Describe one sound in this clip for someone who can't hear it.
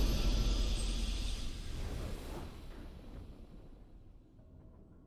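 A triumphant game fanfare rings out loudly and fades away.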